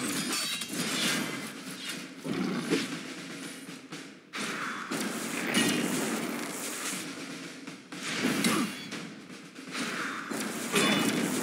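Magic spells burst and whoosh.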